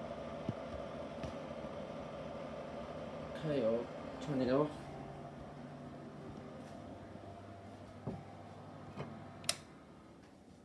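An extractor fan hums steadily, then stops.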